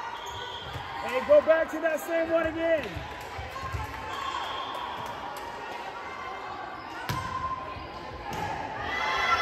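A volleyball is struck hard during a rally in a large echoing gym.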